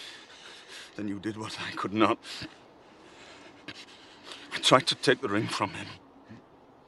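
A man speaks weakly in a strained, breathy voice close by.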